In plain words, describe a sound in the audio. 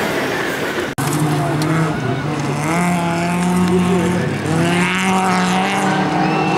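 A rally car engine roars and revs hard.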